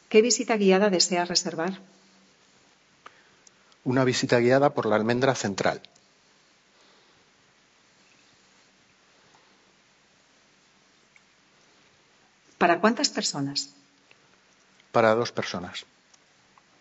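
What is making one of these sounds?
A man speaks calmly in short phrases through a microphone.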